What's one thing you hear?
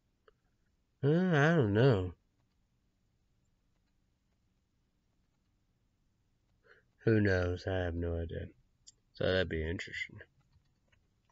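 A young man speaks close by in short bursts, with pauses in between.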